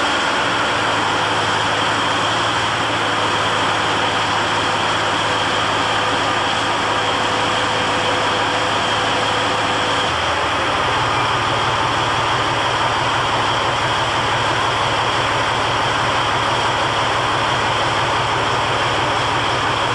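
A tank engine rumbles loudly and steadily.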